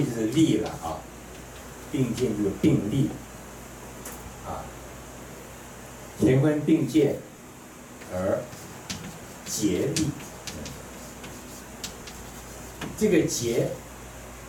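An elderly man speaks calmly through a microphone, in short phrases with pauses.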